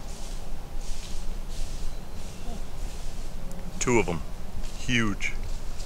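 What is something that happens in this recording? Footsteps rustle through dry leaves and undergrowth.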